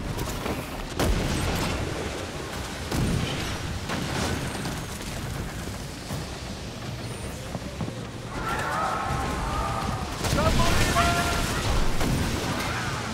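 Cannons fire with deep booms.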